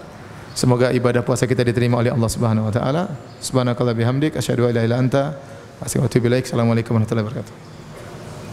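A man recites in a melodic voice into a microphone.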